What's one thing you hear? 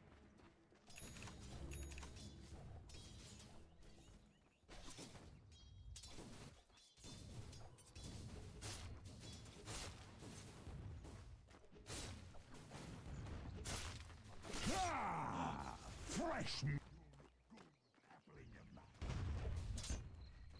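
Game combat effects clash and strike with sharp hits and magical whooshes.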